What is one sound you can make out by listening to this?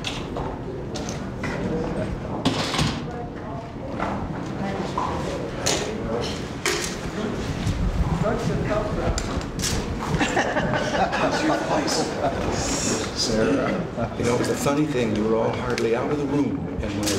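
An elderly man talks calmly nearby.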